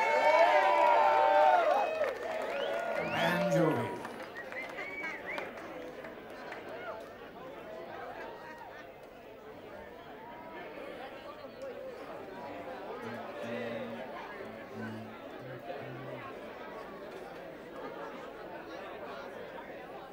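Acoustic guitars play on a stage.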